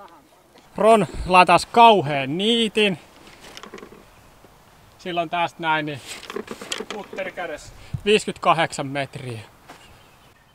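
A man talks with animation close by, outdoors.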